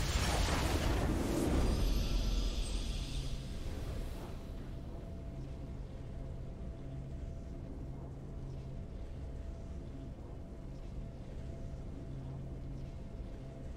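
A triumphant game fanfare swells up.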